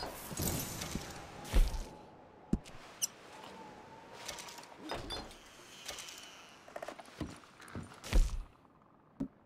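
Boots thud on a wooden floor.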